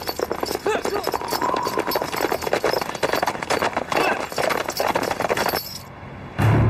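Horses gallop with pounding hooves.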